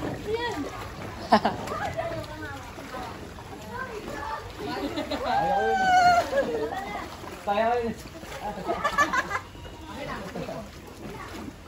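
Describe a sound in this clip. A boy talks and calls out close by.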